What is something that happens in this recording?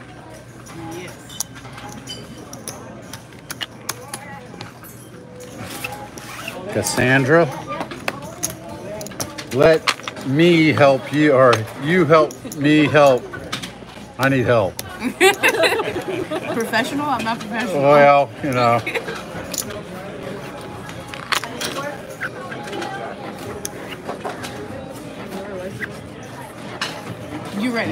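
Casino chips click and clack together.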